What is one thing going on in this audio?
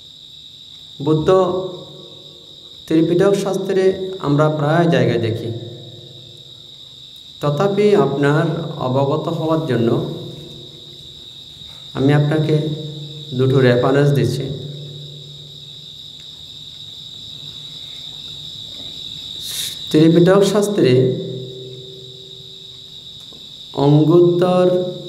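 A man speaks slowly and calmly into a microphone, in phrases with pauses between them.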